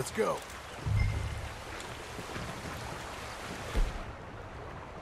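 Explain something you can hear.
Footsteps thud on a wooden bridge.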